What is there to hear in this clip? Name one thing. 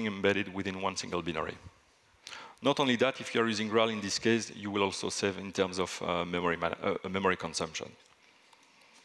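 A man speaks calmly into a microphone over loudspeakers in a large hall.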